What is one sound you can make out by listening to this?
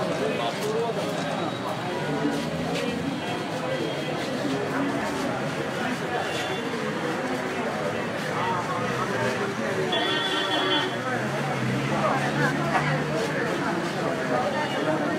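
A crowd of men talk and call out over each other close by.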